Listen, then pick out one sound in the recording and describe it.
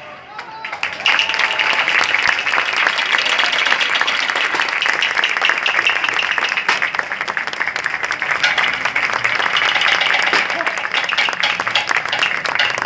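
Brass cymbals crash and shimmer continuously.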